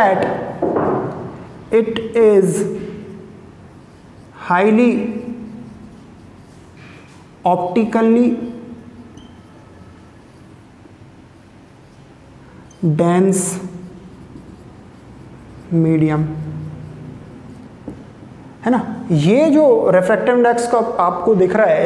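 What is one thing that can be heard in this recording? A young man speaks calmly in short phrases with pauses, close by.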